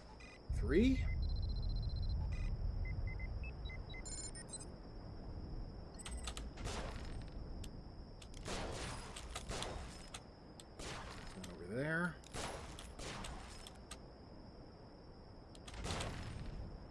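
Game sound effects whoosh and chime.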